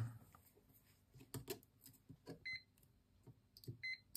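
Metal test probes tap against a circuit board.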